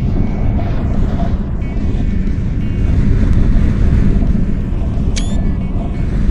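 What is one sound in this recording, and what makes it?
A roller coaster rumbles steadily along its track.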